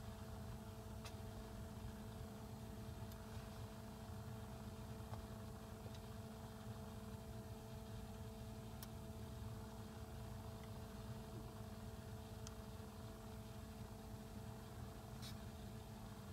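A finger taps a touchscreen with soft clicks.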